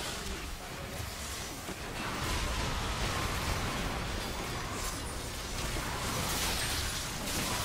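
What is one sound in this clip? Game spells blast and crackle during a battle.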